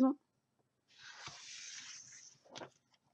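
A hand slides small chips across a table.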